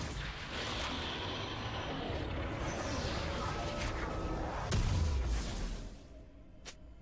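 Game sound effects of spells and combat play loudly.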